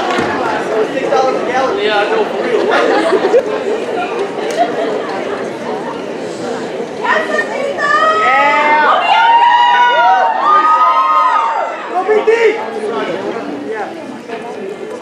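A large audience cheers and whistles loudly in a hall.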